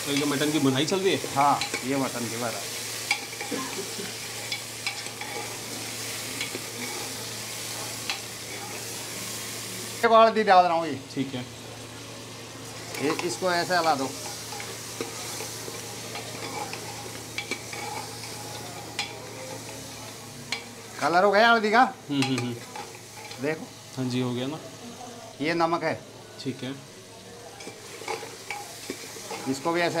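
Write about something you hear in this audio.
A metal ladle scrapes and clinks against a metal pot.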